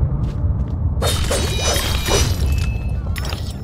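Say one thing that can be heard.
A blade swishes through the air.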